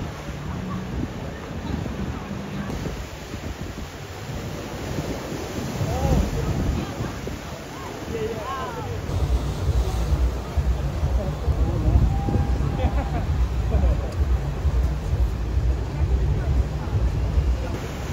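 Waves break and wash over rocks by the sea.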